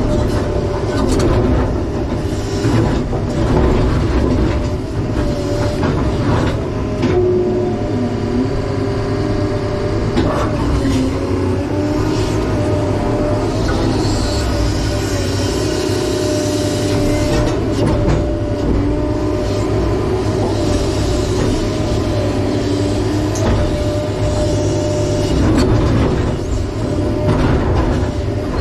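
Rocks scrape and knock against a bucket.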